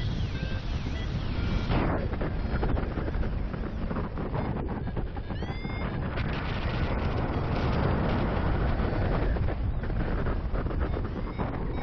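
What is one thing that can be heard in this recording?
Strong wind rushes and buffets loudly, as if high outdoors in flight.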